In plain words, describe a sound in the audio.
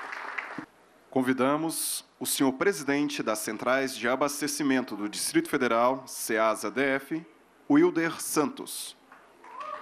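A man speaks with animation over loudspeakers.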